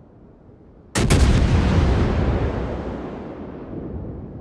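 A ship's main guns fire a single loud, close blast that slowly fades.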